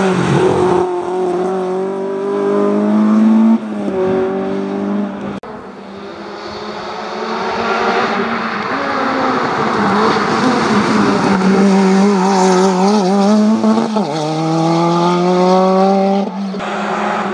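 A rally car engine's pitch rises and drops sharply as gears change.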